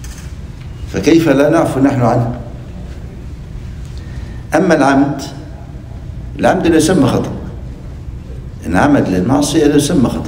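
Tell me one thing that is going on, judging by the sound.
An elderly man speaks slowly and earnestly into a microphone, in short phrases with pauses.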